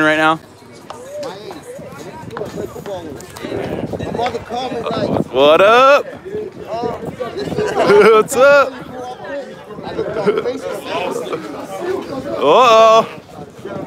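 Several men talk and call out loudly nearby, outdoors.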